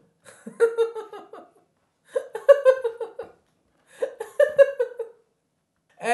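A young man laughs loudly into a microphone in short bursts.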